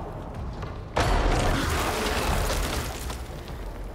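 A loud whooshing rush sweeps through and fades.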